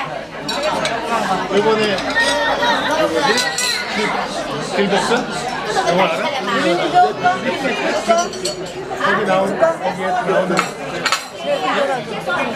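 Dishes and cups clink on a table.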